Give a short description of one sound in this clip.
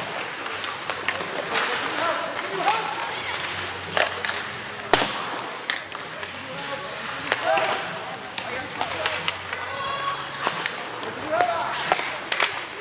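Young players shout and call out across a large echoing rink.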